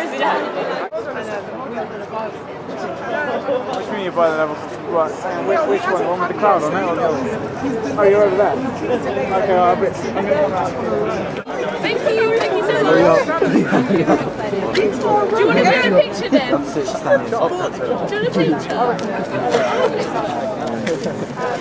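A crowd of men and women chatter outdoors nearby.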